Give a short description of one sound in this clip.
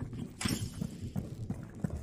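Electricity crackles and sparks.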